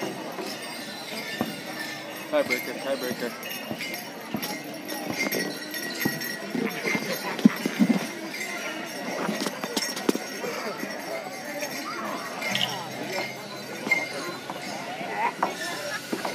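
Bells on a dancer's outfit jingle with each step.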